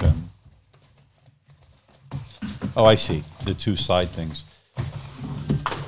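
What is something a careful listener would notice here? Plastic wrap crinkles.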